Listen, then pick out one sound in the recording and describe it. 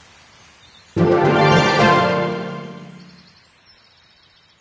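A bright game chime rings out and slowly fades.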